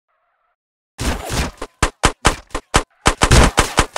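Gunshots fire rapidly, loud and close.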